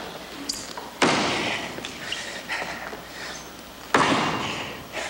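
An axe strikes a wooden stump with sharp thuds.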